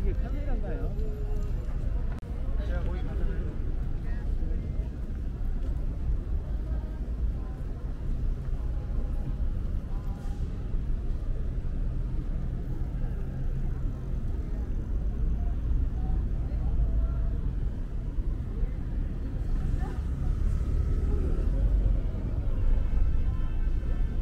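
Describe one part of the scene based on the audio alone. Voices of passers-by murmur nearby.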